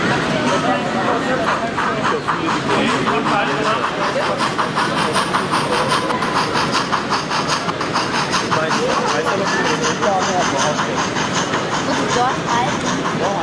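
A small model train clicks rhythmically along its track.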